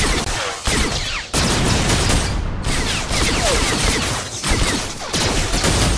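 Blaster guns fire in rapid bursts of zapping shots.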